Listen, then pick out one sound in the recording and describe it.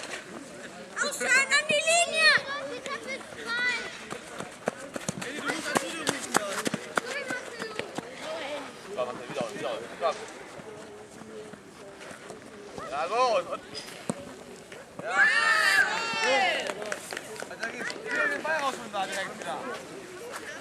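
Children shout excitedly outdoors.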